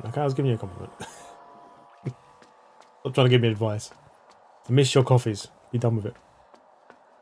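A man talks with animation close to a headset microphone.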